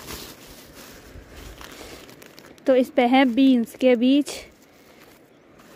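A plastic bag rustles and crinkles as hands handle it.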